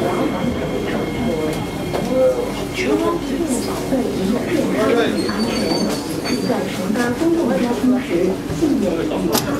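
A train rumbles as it slows to a stop.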